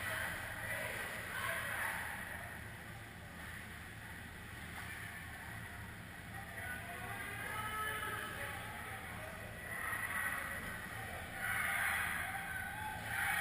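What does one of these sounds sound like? Ice skates scrape and swish across the ice, echoing far off in a large hall.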